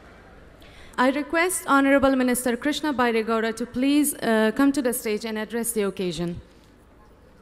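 A young woman speaks clearly through a microphone and loudspeakers.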